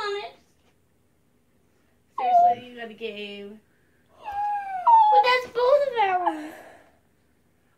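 A young girl squeals and exclaims excitedly up close.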